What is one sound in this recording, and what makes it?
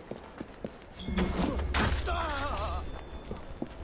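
Fists thud in a brief scuffle.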